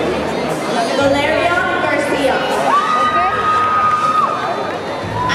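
A large crowd of young people chatters and cheers in a big echoing hall.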